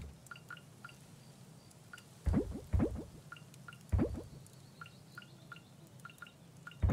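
Short soft electronic blips sound repeatedly as a game menu is scrolled.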